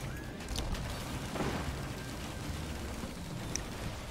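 Small explosions pop and boom.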